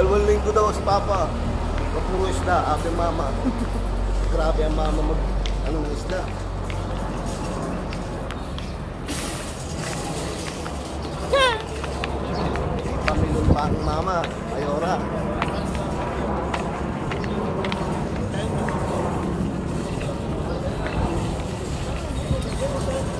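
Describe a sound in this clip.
A shopping cart rattles as it rolls over pavement.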